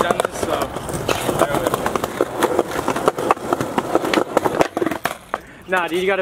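Skateboard wheels roll and rattle on rough concrete.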